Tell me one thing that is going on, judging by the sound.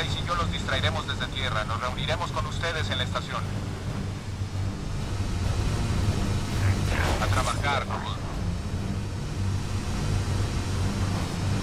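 A vehicle engine rumbles steadily while driving over rough ground.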